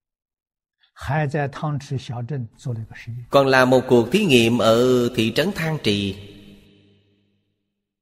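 An elderly man speaks calmly and steadily into a close microphone.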